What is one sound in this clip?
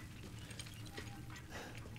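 A fire crackles and burns steadily.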